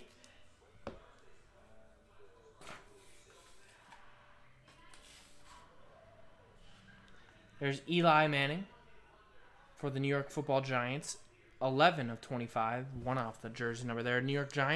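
Trading cards slide and rustle in hands.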